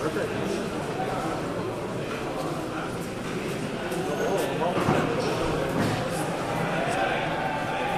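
A crowd of men murmurs and chatters in a large echoing hall.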